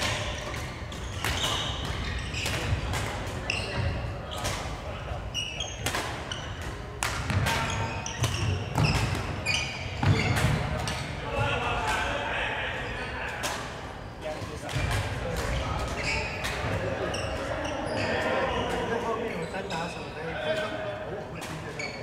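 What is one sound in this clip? Players' footsteps thud on a wooden floor.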